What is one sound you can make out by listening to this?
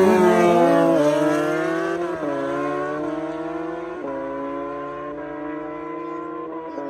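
Motorcycle engines whine into the distance, shifting gears as they fade.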